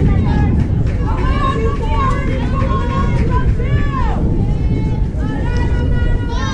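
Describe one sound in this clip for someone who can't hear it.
Young women shout and cheer across an open field.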